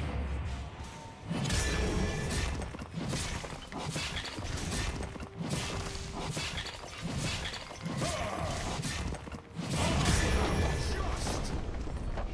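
Blades slash and clang in quick bursts of fighting.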